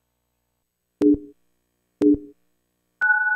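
Two short low electronic beeps sound a second apart.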